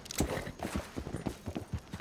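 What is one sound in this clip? A horse's hooves clatter on wooden planks.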